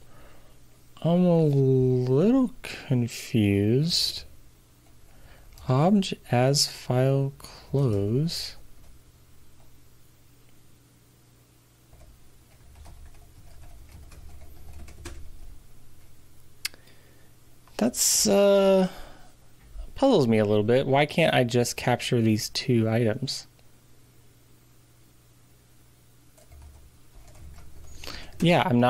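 A middle-aged man speaks calmly and closely into a microphone, in short bursts with pauses.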